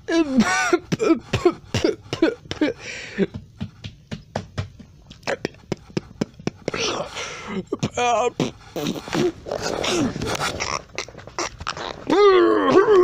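Hands knock and rub against a phone held close by.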